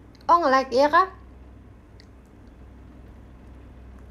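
A young woman bites into crispy food with a crunch.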